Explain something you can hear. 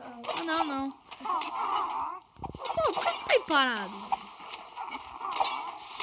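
Cartoonish creatures grunt and murmur in short nasal bursts.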